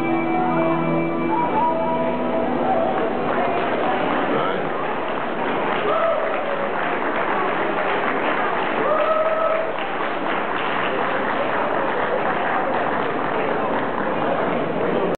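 A crowd of adults chatters in the background.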